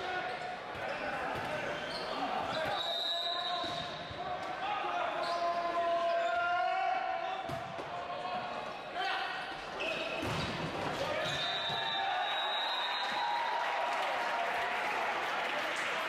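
A volleyball is struck with hands.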